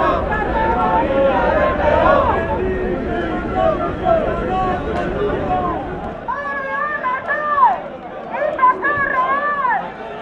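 Many footsteps shuffle on a road.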